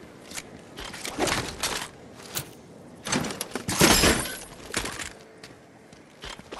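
A game character picks up items with short chimes.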